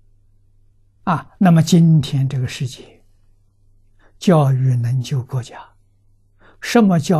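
An elderly man speaks calmly and close through a lavalier microphone.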